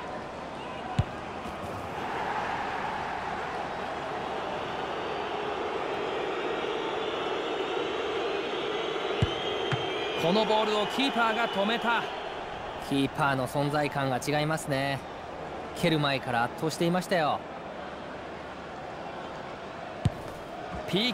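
A football is struck with a sharp thud.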